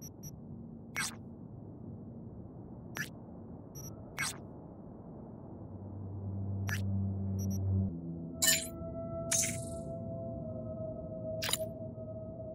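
Short electronic clicks sound as menus open and close.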